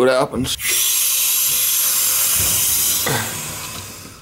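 Water hisses loudly through a pipe.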